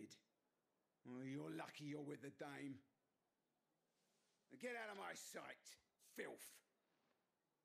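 A man speaks harshly and with contempt through a game's sound.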